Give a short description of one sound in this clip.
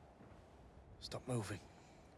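A young man gasps sharply close by.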